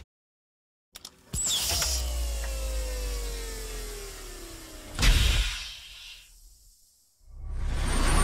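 A heavy vault door creaks and swings open with a deep metallic groan.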